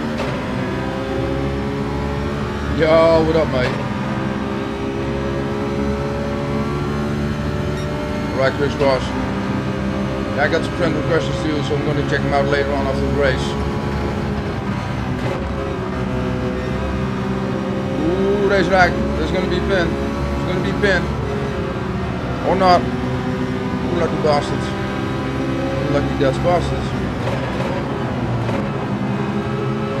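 A racing car engine drones steadily and shifts pitch as it changes gear.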